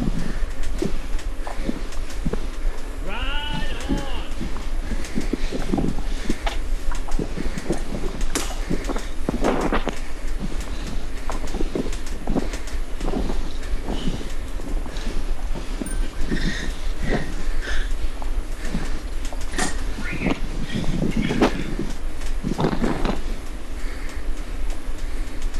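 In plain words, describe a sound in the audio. A man talks into a microphone between efforts.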